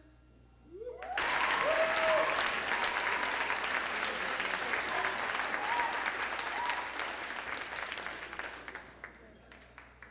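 A crowd applauds and cheers loudly.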